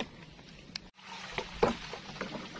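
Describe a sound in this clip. Wood knocks against the side of a boat.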